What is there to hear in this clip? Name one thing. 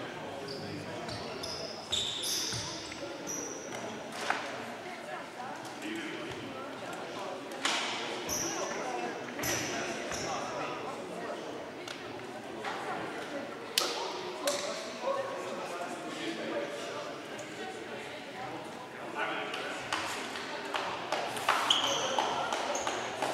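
Young women talk quietly in a large, echoing hall.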